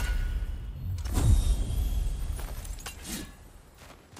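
A chest lid thuds.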